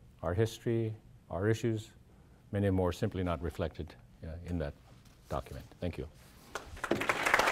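An elderly man speaks into a microphone in a large room.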